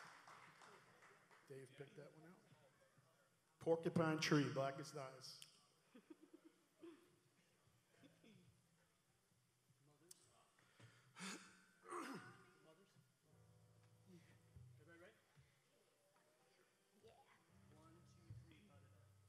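An electric guitar plays loose, quiet notes through an amplifier.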